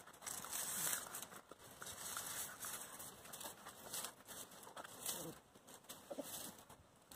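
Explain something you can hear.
Small paws scuffle and scratch on dry straw and dirt.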